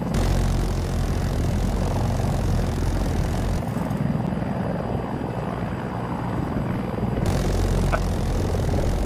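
A heavy gun fires rapid bursts with deep booms.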